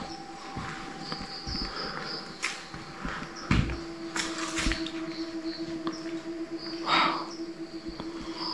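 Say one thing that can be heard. A wooden door knocks softly as it is pushed.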